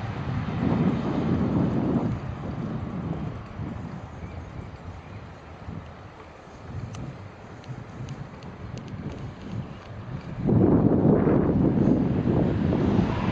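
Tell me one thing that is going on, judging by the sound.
Wind rushes and gusts past the microphone outdoors.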